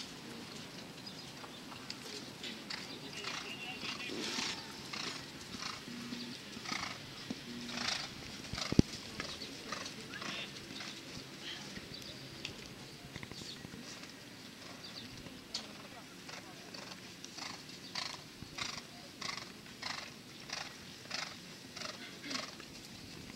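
A horse's hooves thud rhythmically on soft sand.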